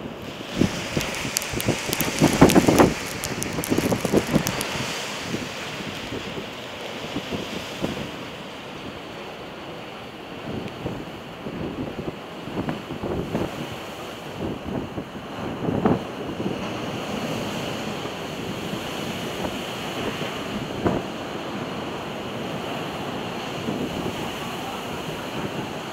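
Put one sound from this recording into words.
Strong wind roars and gusts outdoors.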